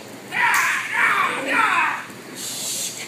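A man shouts loudly and sharply in a large echoing hall.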